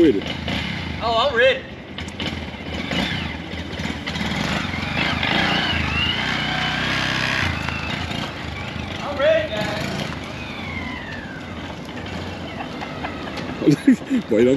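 A small motorcycle engine runs and revs nearby.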